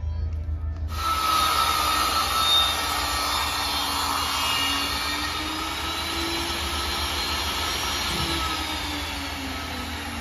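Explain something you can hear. A panel saw whirs as its blade is pulled down through a board.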